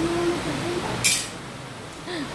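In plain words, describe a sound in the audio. An arrow is loosed from a bow with a sharp thwack.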